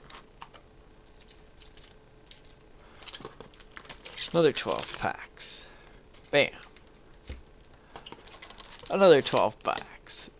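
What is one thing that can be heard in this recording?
Foil card packs crinkle and rustle in hands.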